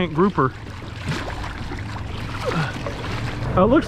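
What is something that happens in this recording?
A large fish thrashes and splashes at the water's surface.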